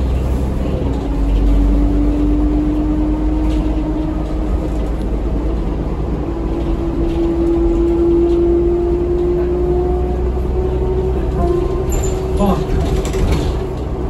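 A bus motor whines, its pitch slowly rising as the bus speeds up.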